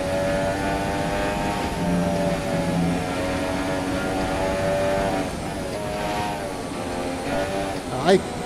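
A racing car engine whines at high revs through speakers, shifting pitch as gears change.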